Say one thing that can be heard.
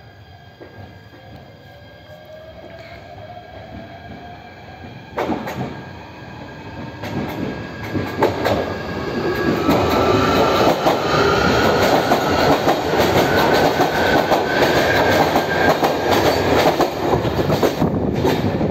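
A train approaches and rumbles loudly along the platform.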